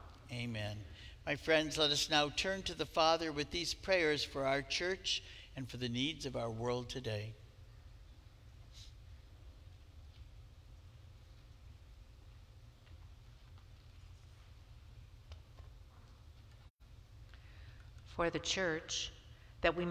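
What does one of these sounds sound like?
A man speaks calmly through a loudspeaker in a large echoing hall.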